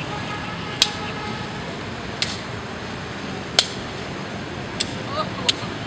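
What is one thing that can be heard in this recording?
Sneakers slap sharply on stone paving now and then.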